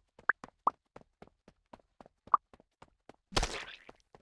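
Quick electronic pops sound as little runners join a crowd in a game.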